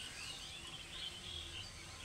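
Leaves rustle softly as a hand brushes through a plant.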